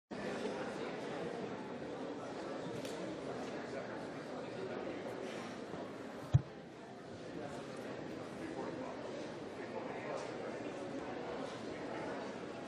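Many men and women chatter at once in a large echoing hall.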